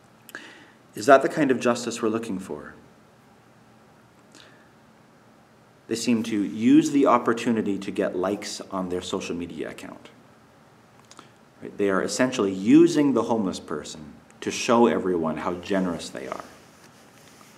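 A man speaks calmly and close to the microphone, with pauses.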